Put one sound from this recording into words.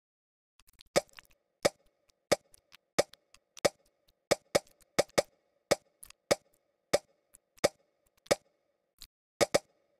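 Short popping game effects sound in quick succession.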